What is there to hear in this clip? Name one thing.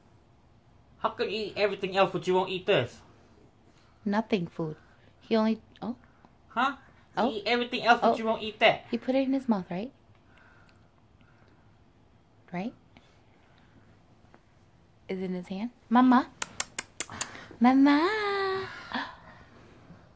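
A woman talks playfully to a baby close by.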